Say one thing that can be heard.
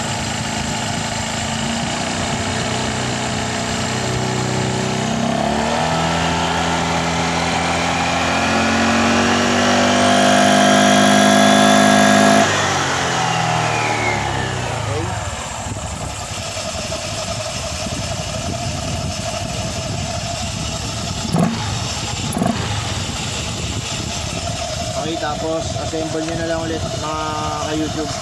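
A scooter engine idles, revs up with a rising whine, then drops back to idle.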